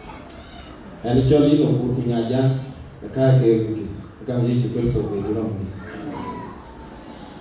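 A man speaks loudly through a microphone and loudspeakers in an echoing room.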